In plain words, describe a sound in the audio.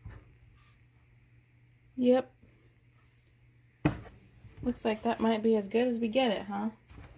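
A block of soap knocks down onto a hard surface.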